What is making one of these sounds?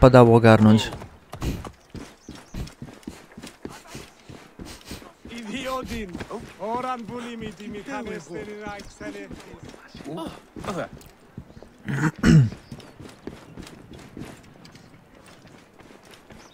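Footsteps patter quickly on stone steps.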